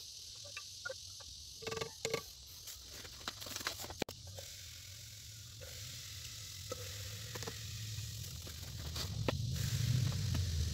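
Liquid swirls and sloshes in a glass jar.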